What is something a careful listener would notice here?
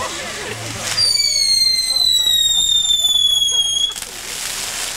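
A firework whistles shrilly, slowly dropping in pitch.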